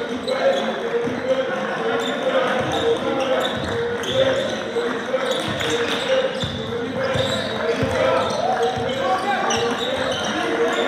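Young players shout to each other across the hall.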